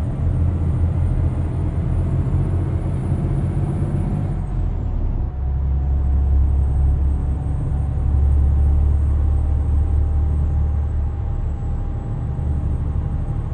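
A truck engine hums with a low, steady drone.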